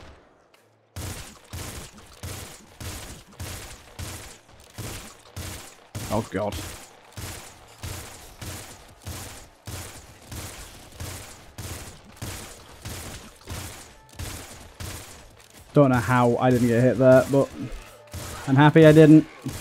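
Video game guns fire in rapid, steady bursts of shots.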